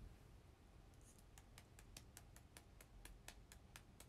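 Hands rub and brush through long hair close by.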